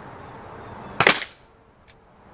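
An air rifle fires a single sharp shot.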